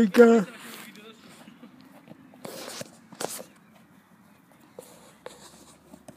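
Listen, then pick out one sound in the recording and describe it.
A soccer ball is kicked on grass.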